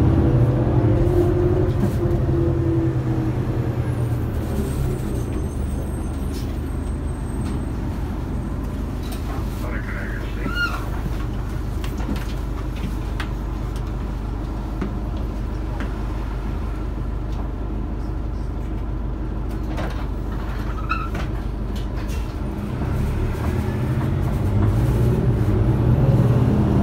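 A bus engine rumbles steadily, louder as the bus speeds up at the start and end.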